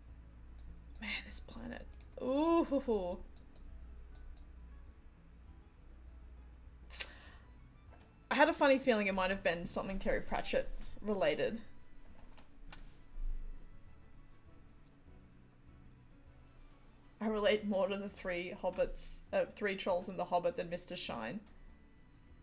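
A woman talks calmly into a close microphone, in bursts with pauses.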